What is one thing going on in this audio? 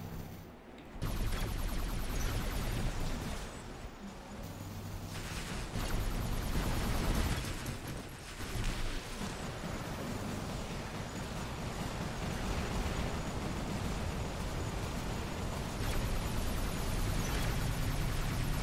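Heavy machine guns fire in rapid bursts.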